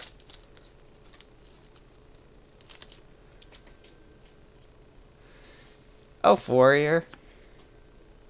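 Playing cards rustle and slide against each other.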